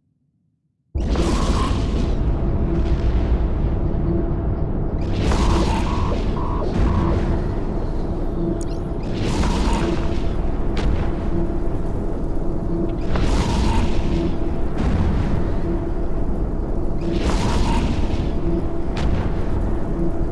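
Spaceship guns fire in loud bursts every few seconds.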